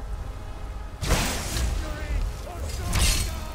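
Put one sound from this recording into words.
A bowstring creaks as it is drawn.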